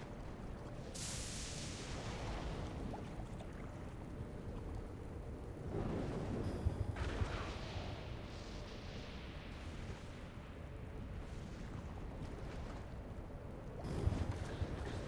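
Fire bursts up with a loud whoosh.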